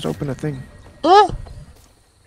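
A young man exclaims loudly in surprise.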